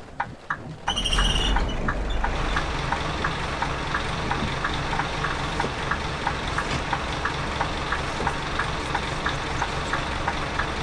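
A bus engine hums steadily at low idle.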